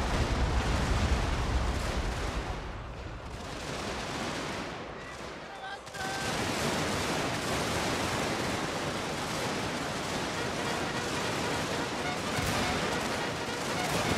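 Many boots tramp on the ground as a large crowd of soldiers marches.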